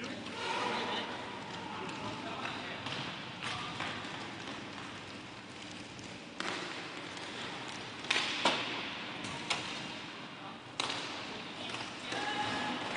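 Skate wheels roll and scrape across a hard floor in a large echoing hall.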